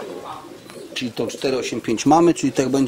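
A man speaks up close.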